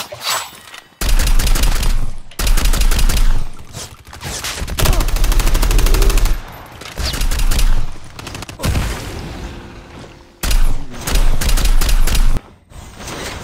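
Gunfire bursts out loudly in rapid volleys.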